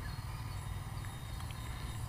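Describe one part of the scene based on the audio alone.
Liquid pours from a clay pot.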